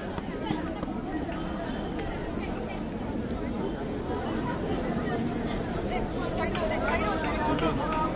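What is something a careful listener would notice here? A crowd of young girls and onlookers shouts and cheers outdoors.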